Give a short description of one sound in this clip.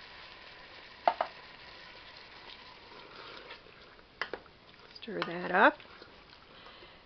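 A wooden spoon knocks and scrapes against a metal pot.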